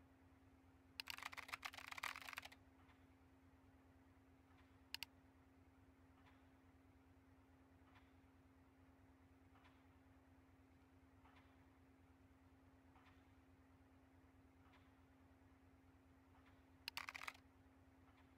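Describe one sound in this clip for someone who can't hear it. Keys clatter in a quick burst of typing.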